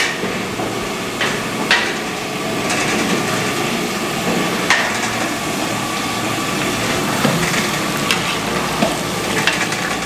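A metal ladle scrapes and clanks against a large pot.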